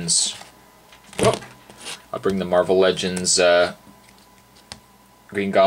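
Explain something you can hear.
A plastic toy figure clicks lightly as hands handle it.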